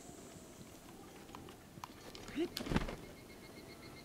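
A paraglider cloth snaps open with a whoosh.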